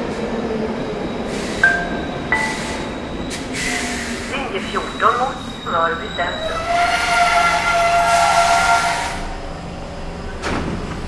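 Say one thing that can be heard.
A subway train rumbles as it rolls slowly to a stop.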